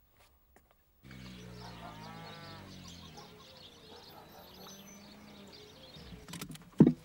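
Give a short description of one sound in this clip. A car engine hums as a car drives slowly past.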